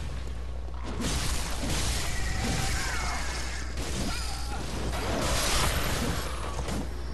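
A beast snarls and shrieks close by.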